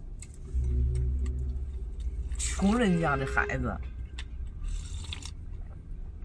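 A man slurps soup from a bowl.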